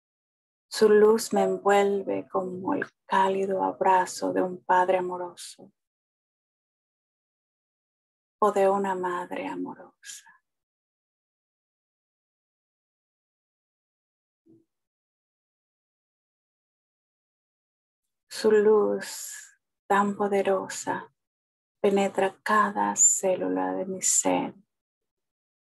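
A middle-aged woman speaks calmly into a microphone over an online call, pausing between phrases.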